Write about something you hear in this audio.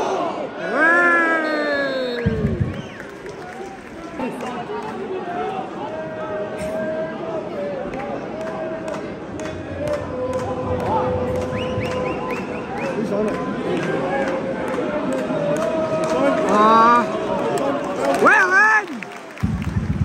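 Men nearby shout loudly.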